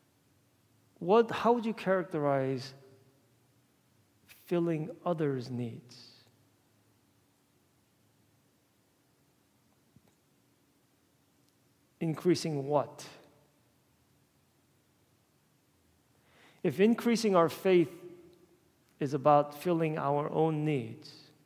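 A man speaks with animation through a microphone in a large echoing hall, pausing between phrases.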